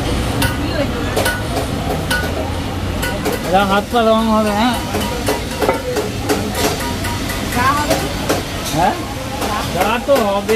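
Small metal objects clink and tap.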